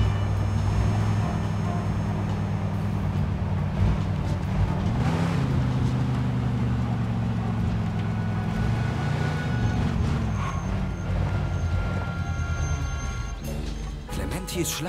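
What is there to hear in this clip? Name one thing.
A car engine hums steadily and rises as the car speeds up, then slows to a stop.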